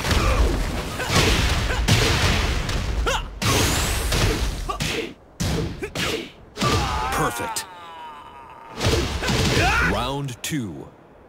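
Heavy punches and kicks land with loud thuds and cracks.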